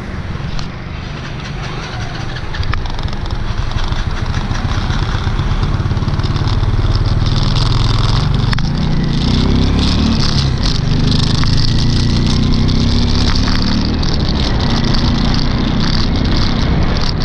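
Wind rumbles loudly across the microphone outdoors.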